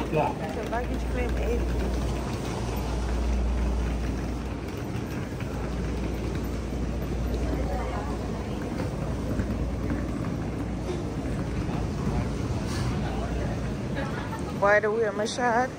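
Suitcase wheels roll over a tiled floor.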